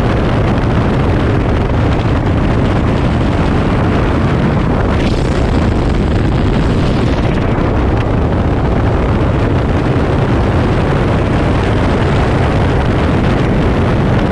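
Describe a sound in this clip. Strong wind rushes and buffets loudly.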